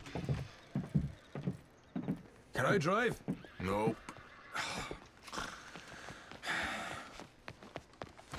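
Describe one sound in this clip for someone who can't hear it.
Boots thud on a hard floor in footsteps.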